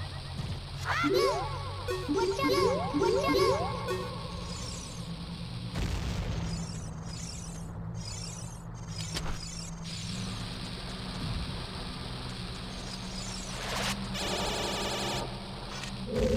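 Low game background music plays steadily.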